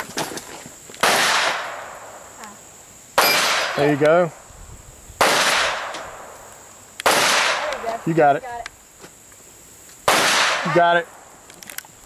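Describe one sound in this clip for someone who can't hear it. Gunshots ring out loudly outdoors, one at a time, with short pauses between them.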